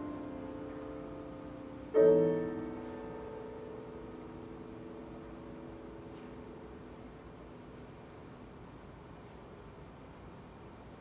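A grand piano plays a loud chord that rings out and slowly fades in a large hall.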